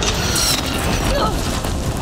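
An explosion bursts with debris scattering.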